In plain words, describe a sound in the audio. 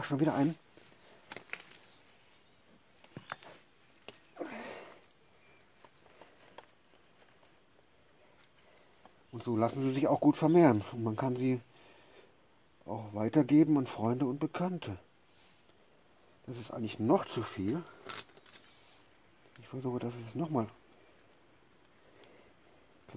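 Roots and soil rustle and crackle as hands pull them apart.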